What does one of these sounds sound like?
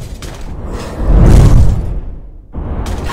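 Snow bursts and crunches under a heavy strike.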